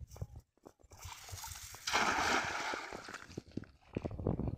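A cast net splashes down onto water.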